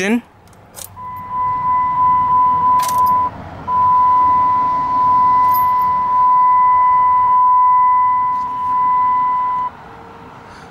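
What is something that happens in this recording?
A car's warning chime beeps steadily.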